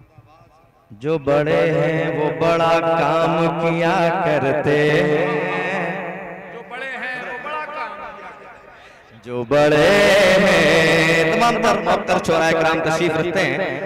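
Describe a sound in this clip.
A man chants loudly and with fervour into a microphone, heard over loudspeakers.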